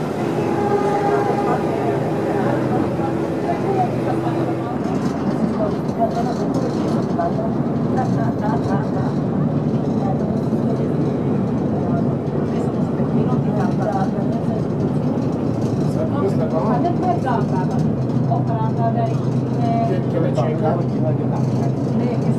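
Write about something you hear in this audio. A ferry's diesel engine hums under way.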